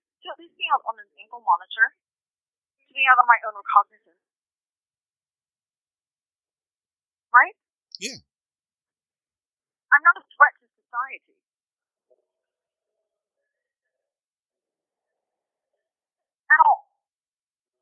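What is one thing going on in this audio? A young woman speaks calmly in short phrases with long pauses.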